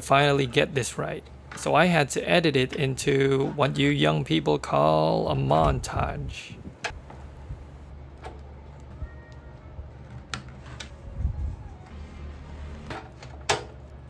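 Plastic cable connectors click and rattle close by.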